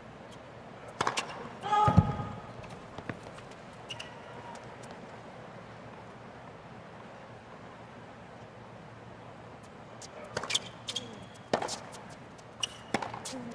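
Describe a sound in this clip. Tennis balls are struck with sharp pops, back and forth in a rally.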